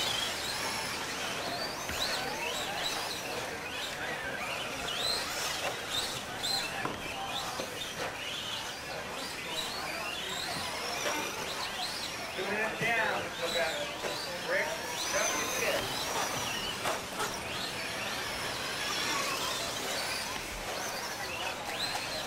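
A small electric motor whines, revving up and down quickly.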